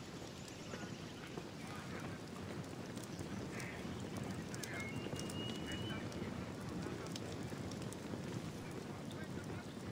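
A fire crackles in a brazier.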